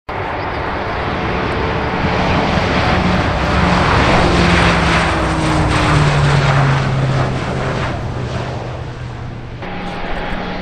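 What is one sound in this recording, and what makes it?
Propeller plane engines drone loudly as an aircraft takes off and passes close by.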